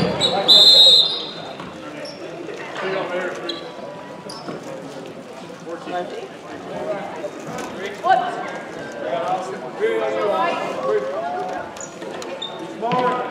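A crowd murmurs and chatters in an echoing gym.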